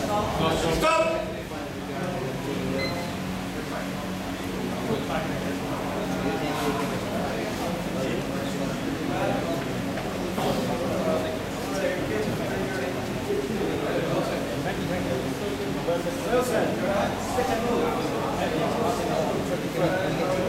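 A man talks nearby in an echoing hall.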